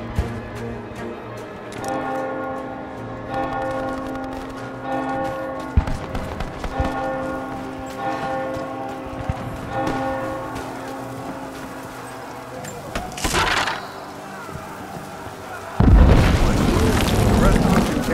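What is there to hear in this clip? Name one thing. Footsteps crunch over stone and grass.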